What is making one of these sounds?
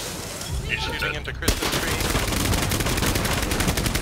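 A rifle fires a burst of rapid shots.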